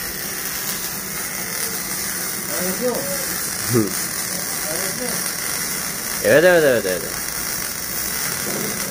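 An electric welder crackles and hisses steadily.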